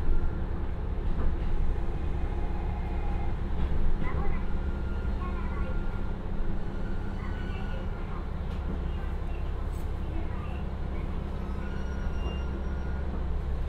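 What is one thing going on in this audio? Train wheels rumble on rails, slowing to a stop.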